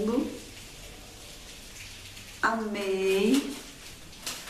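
A woman speaks expressively, close to the microphone.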